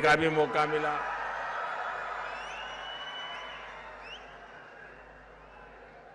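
A large crowd claps and cheers, slowly fading.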